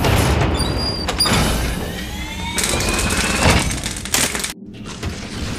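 A metal valve wheel squeals and grinds as it turns.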